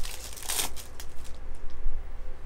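Foil wrapping crinkles and tears as a card pack is opened.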